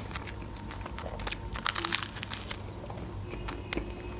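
Toasted bread crunches as a young woman bites into it.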